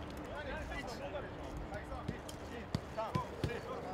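A soccer ball thuds off a foot as players pass it.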